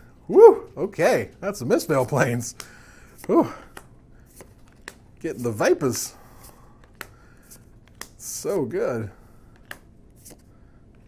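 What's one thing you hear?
Playing cards slide and flick against each other in a hand.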